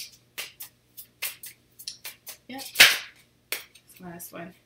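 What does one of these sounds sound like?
Playing cards shuffle and flick with quick clicks.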